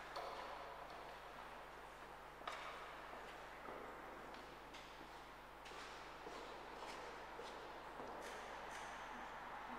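Footsteps echo through a large, reverberant hall.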